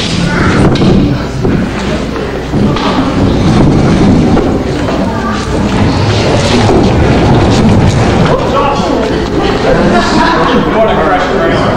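A piano rolls heavily across a floor.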